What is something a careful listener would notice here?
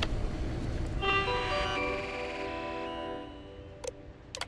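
Electronic tones chime in a quick rising sequence as a computer terminal starts up.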